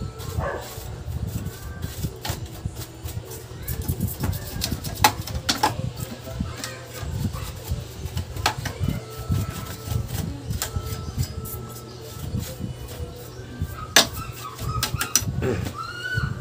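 Small metal parts click and rattle as hands work inside an electronic unit.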